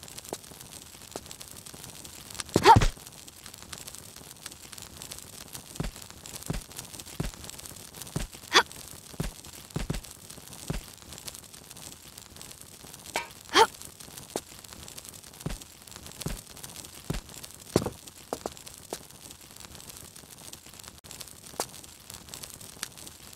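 Soft thuds of footsteps and climbing sound on stone and wood.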